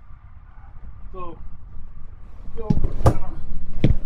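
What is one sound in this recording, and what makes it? A recliner's footrest folds down with a mechanical clunk.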